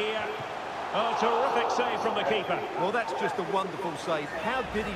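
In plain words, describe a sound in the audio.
A crowd cheers loudly as a shot goes toward goal.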